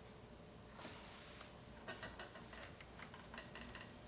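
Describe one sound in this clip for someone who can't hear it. A heavy wooden door opens with a click of its handle.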